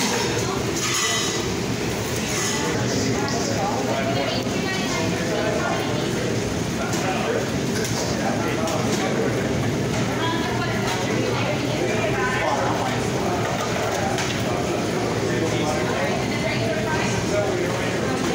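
Many people chatter in a busy room.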